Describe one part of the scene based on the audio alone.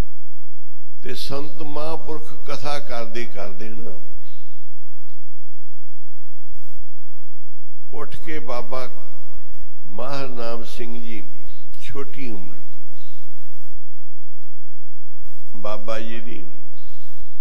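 An elderly man speaks slowly through a microphone, in short phrases with pauses.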